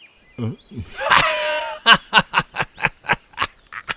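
A man laughs loudly and raucously.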